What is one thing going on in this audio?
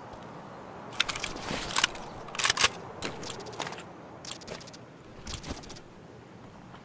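A rifle fires several sharp shots.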